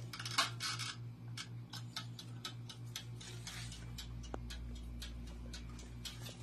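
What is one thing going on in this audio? A mechanical timer ticks steadily.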